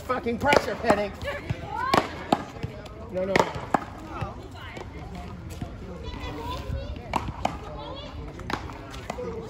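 A ball smacks sharply off paddles and a wall, again and again, outdoors.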